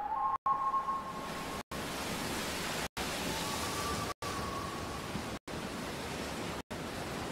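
A waterfall splashes and roars steadily.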